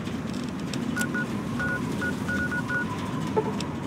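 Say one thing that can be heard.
A handheld device gives short electronic beeps.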